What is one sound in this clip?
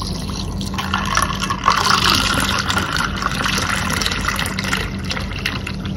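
Liquid pours and splashes into a glass, foaming up.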